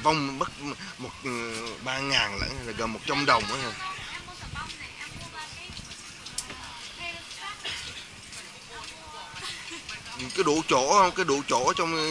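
Diners chatter in a low murmur outdoors.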